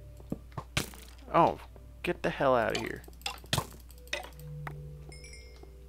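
A sword strikes a creature with a dull thud.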